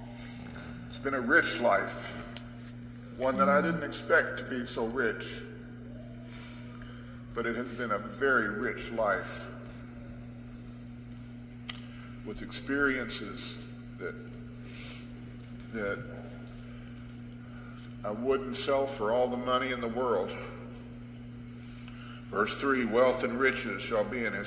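An elderly man preaches with emphasis through a microphone in a large hall.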